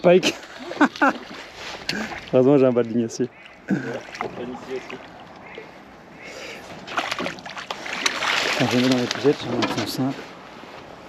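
A fish splashes and thrashes at the water's surface.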